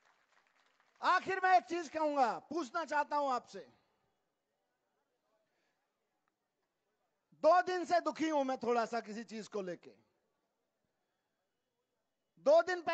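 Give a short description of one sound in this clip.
A middle-aged man speaks forcefully into a microphone over loudspeakers, in bursts with pauses.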